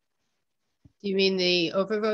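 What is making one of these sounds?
An older woman speaks over an online call.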